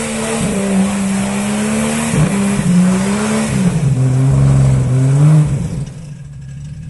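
An off-road vehicle's engine revs hard, rising and falling in pitch.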